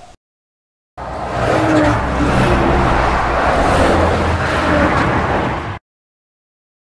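A truck rumbles past.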